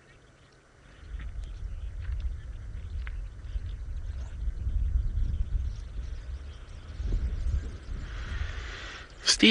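A lion chews and tears at meat close by.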